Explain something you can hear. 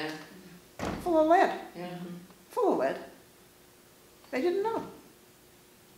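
An elderly woman speaks calmly and close by, in short bursts with pauses.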